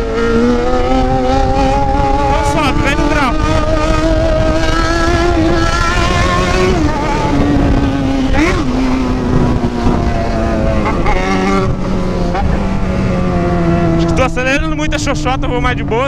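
A motorcycle engine roars and revs as it rides along a road.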